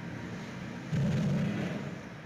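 A large animal shifts and rolls heavily on a hard floor with a dull thump.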